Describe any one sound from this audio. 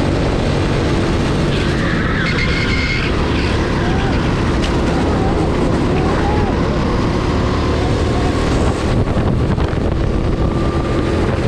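A kart engine buzzes loudly up close, revving as it speeds along.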